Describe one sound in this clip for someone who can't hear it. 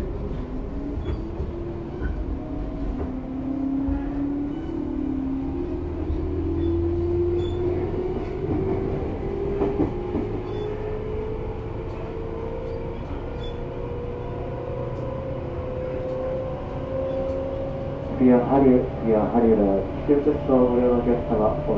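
An electric train approaches with a motor whine that slowly rises in pitch.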